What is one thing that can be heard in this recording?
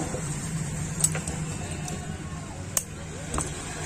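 Scissors snip through a thin wire.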